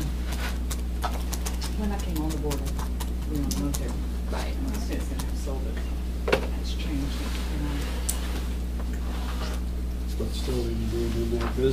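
A woman speaks calmly across a table.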